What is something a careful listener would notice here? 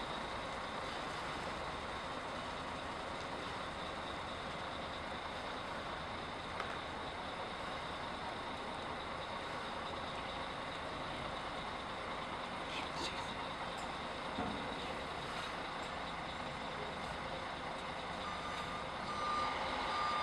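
A coach engine idles with a steady low rumble outdoors.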